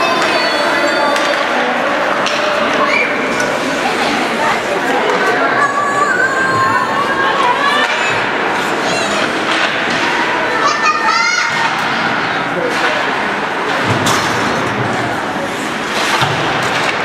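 Skates scrape and carve across ice in a large echoing rink.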